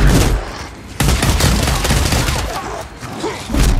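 A rifle fires loud shots in quick succession.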